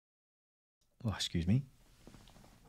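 A middle-aged man speaks briefly and calmly, close to a microphone.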